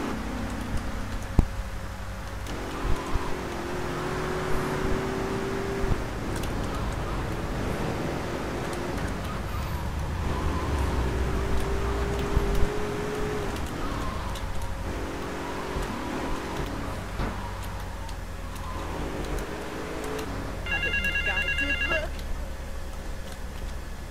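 A car engine hums and revs steadily as the car drives along.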